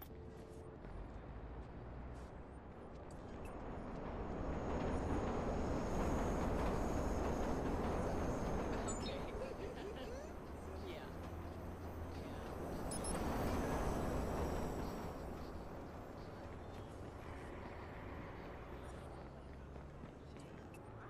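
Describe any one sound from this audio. Traffic rumbles and hisses along a city street.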